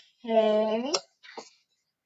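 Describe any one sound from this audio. A young child speaks briefly up close.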